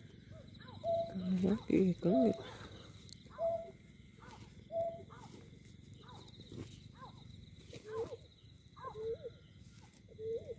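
A bird squawks and chirps repeatedly, close by.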